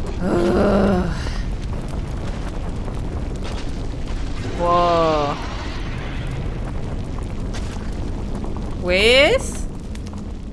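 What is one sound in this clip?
Flames roar steadily.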